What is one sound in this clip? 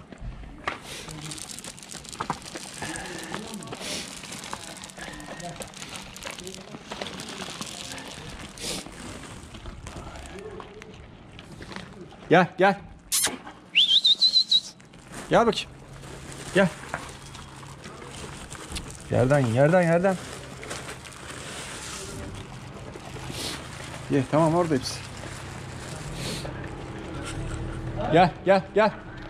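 Dogs crunch dry food close by.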